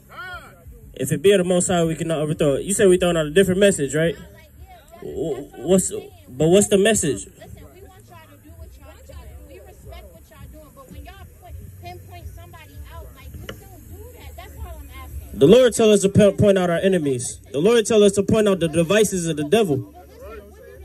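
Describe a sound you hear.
A man speaks loudly through a loudspeaker outdoors, in bursts with pauses.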